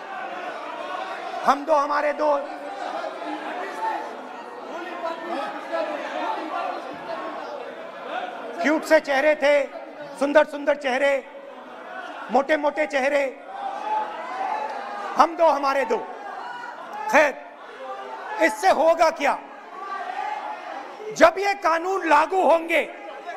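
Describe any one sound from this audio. A man speaks with animation into a microphone in a large echoing hall.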